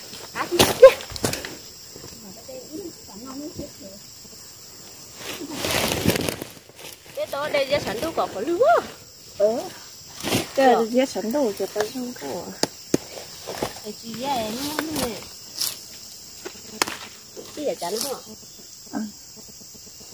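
Leafy plant stems snap and rustle as they are picked.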